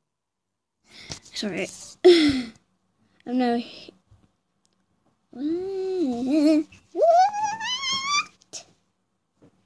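A young girl speaks with animation close to a microphone.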